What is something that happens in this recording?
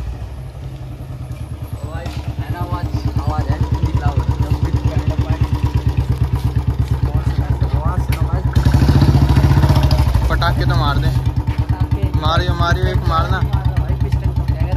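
A motorcycle engine idles with a steady, rapid thudding.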